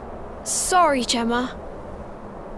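A young boy speaks hesitantly.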